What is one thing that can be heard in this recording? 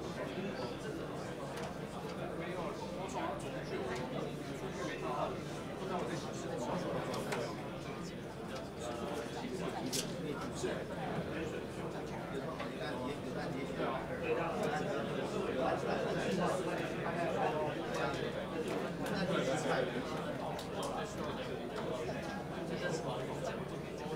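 Many men and women chatter at once in a room.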